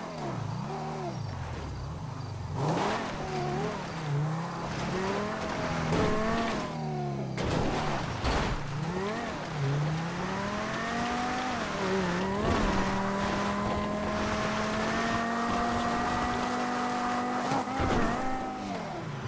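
Tyres crunch and skid on dirt and grass.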